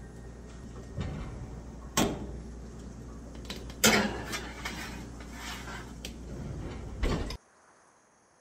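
A metal tray scrapes and clanks against an oven rack.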